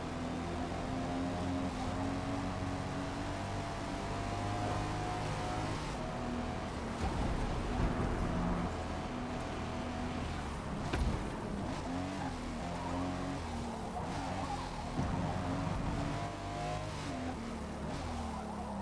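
A car engine roars loudly, rising in pitch and dropping with each gear change.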